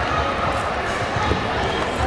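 A kick thuds against a padded chest protector.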